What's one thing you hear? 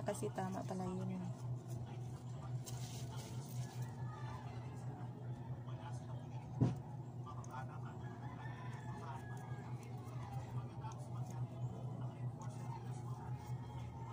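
Hands handle a plastic headlamp, with small clicks and rustles.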